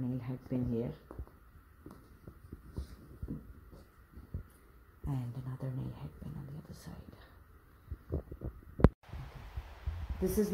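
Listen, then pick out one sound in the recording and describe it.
Cloth rustles softly as hands adjust it.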